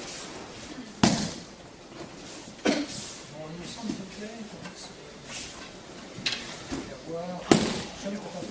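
A body slams onto a mat with a loud thud.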